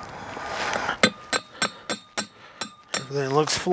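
A hammer strikes a metal tube with sharp ringing clangs, several times in quick succession.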